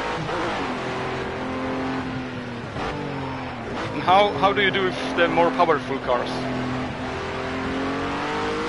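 A racing car engine drones steadily, its pitch rising and falling with the gears.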